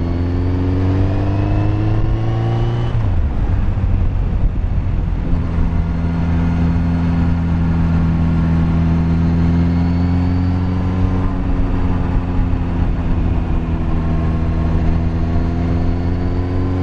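A motorcycle engine hums steadily, rising in pitch and then dropping as the rider shifts gear.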